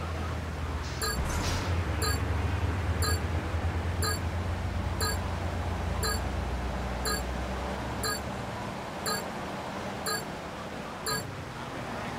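A countdown timer beeps once every second.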